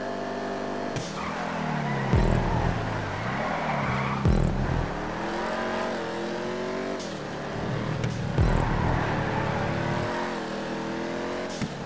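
A race car engine drops in pitch and climbs again, over and over.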